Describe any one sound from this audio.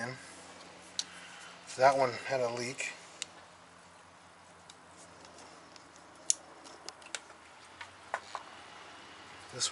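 Metal tools click and clink against an engine.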